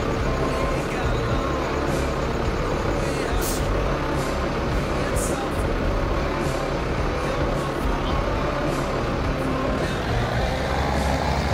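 A tractor engine idles with a low rumble.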